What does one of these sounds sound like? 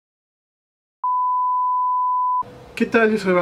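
A steady high test tone sounds.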